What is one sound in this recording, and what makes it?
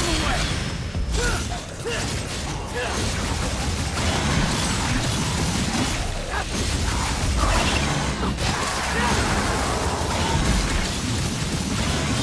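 Heavy impacts boom and rumble.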